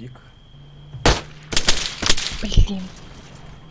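Loud pistol shots ring out in quick succession.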